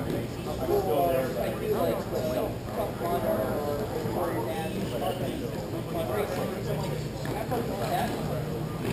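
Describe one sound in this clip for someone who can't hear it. Skate wheels roll and rumble across a hard floor in a large echoing hall.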